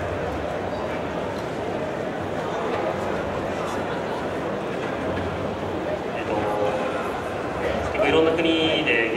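A large crowd murmurs and chatters in a big echoing hall.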